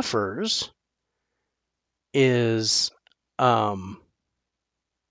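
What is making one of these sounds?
A middle-aged man talks with animation into a headset microphone, in short bursts.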